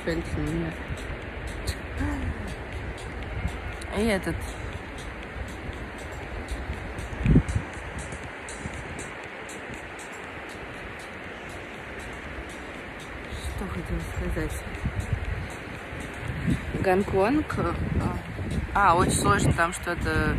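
A young woman speaks calmly and close to a phone microphone.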